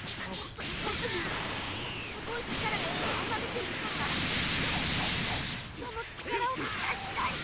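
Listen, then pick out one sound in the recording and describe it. Fighters rush through the air with loud whooshes.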